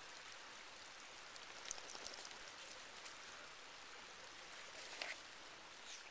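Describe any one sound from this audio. A dog's paws rustle through dry leaves close by.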